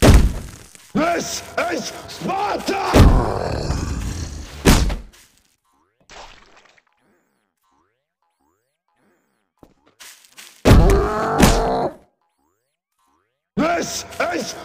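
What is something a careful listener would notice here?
A monster lets out loud, wailing screeches in bursts.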